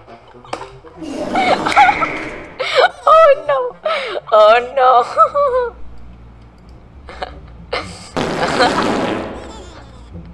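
A boy laughs loudly into a close microphone.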